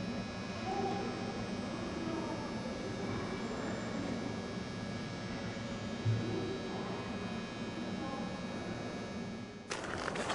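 A train's wheels clatter over track joints.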